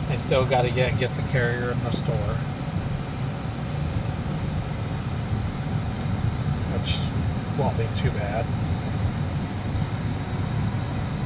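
A vehicle's engine and tyres on asphalt rumble from inside the cab at road speed.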